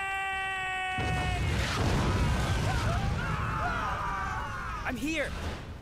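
An explosion roars with a deep rumble.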